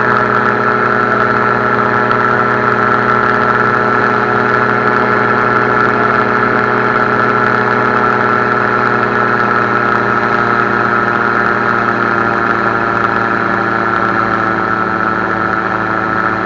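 A small aircraft engine drones steadily and loudly close by.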